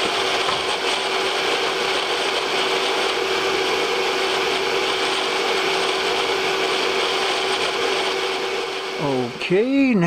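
A milling machine motor whirs with a steady high hum.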